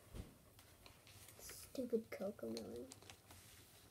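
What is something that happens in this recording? Pencils rattle as a hand picks through a case.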